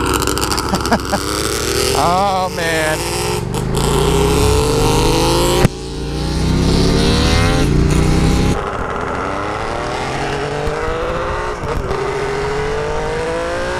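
A motorcycle engine roars and revs up as the rider accelerates.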